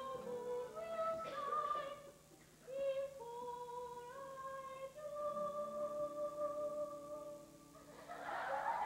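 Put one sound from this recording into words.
A group of women sing a lively tune together.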